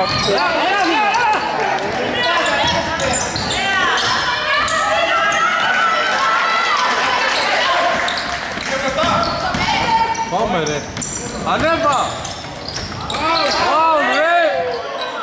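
Young women shout and call out across an echoing gym.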